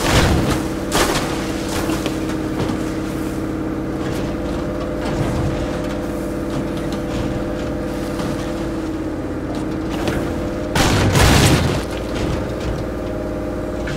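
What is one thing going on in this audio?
A truck engine rumbles steadily as it drives over rough ground.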